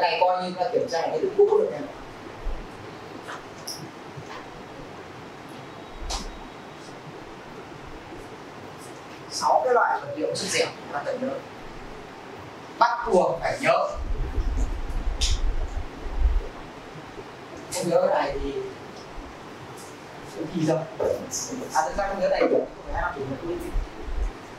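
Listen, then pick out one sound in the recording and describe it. A man speaks to a class in bursts with pauses.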